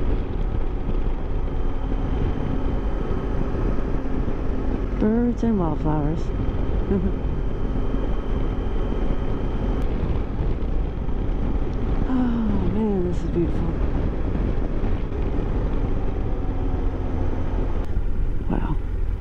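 Wind buffets loudly and steadily against a microphone on a moving motorcycle.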